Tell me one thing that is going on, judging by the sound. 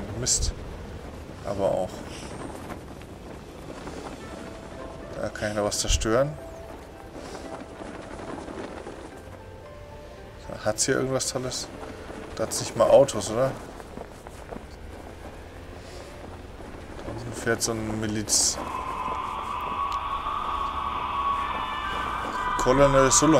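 Wind rushes past a parachute steadily.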